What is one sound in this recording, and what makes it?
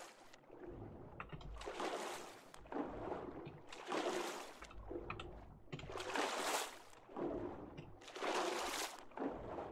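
Water swishes in repeated swimming strokes.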